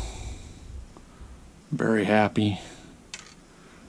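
Small metal parts click softly between fingers.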